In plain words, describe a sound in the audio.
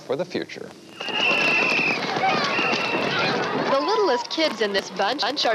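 Many young children shout and chatter outdoors.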